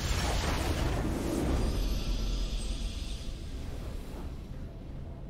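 A triumphant game fanfare swells loudly and then fades.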